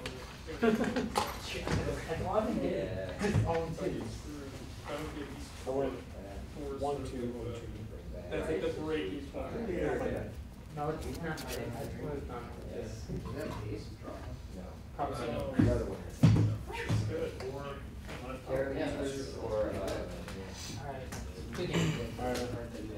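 Playing cards rustle softly as they are shuffled in a player's hands.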